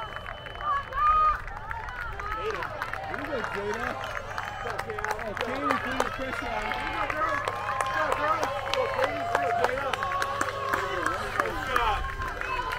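A crowd of spectators cheers and shouts encouragement outdoors.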